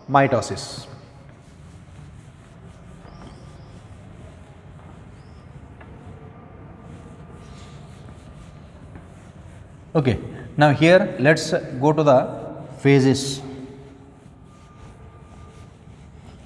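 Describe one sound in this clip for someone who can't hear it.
A cloth duster rubs across a whiteboard.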